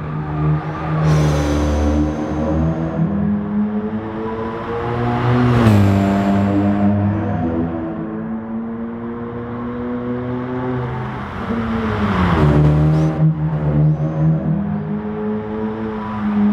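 A racing car engine roars loudly, rising and falling in pitch as the car shifts gears and brakes.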